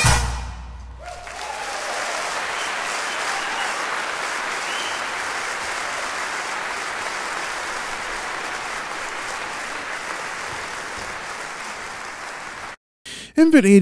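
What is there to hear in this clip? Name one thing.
Small waves wash gently onto a pebble beach.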